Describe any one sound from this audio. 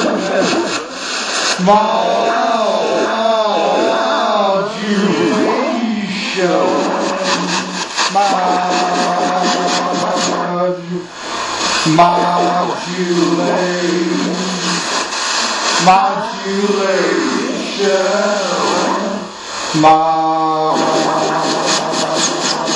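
An electronic synthesizer plays warbling, gliding tones that bend up and down.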